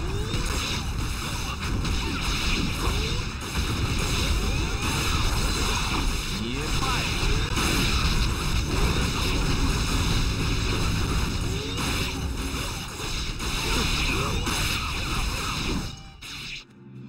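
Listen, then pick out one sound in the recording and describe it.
Swords clash and magic blasts burst in quick succession.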